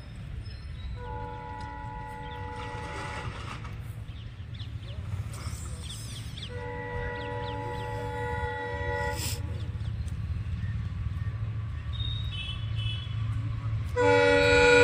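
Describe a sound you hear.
A train horn blares in long blasts.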